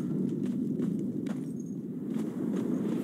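Footsteps tap quickly on wooden boards.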